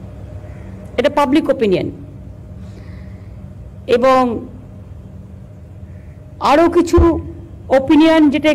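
A woman speaks slowly into a microphone, with long pauses.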